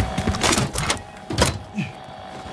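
A metal case lid clanks open.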